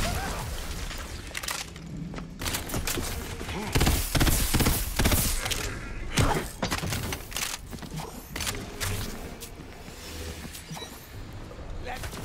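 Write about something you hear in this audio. Electric zaps crackle and buzz.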